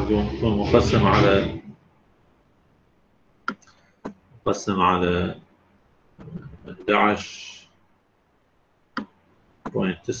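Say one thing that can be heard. A man speaks calmly through a microphone, explaining in short phrases with pauses.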